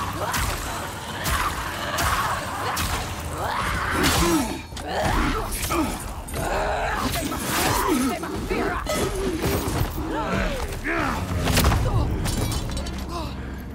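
Swords clash and strike with sharp metallic ringing.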